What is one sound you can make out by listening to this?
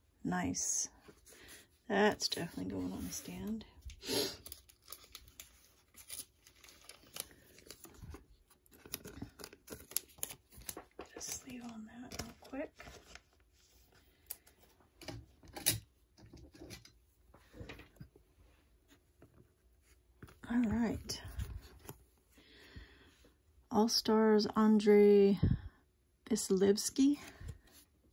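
Trading cards rustle and slide between fingers close by.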